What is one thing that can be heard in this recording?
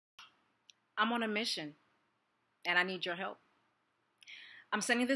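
A woman speaks calmly and close to a microphone, in short phrases with pauses.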